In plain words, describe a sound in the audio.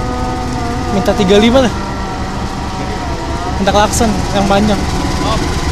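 A train horn blares twice.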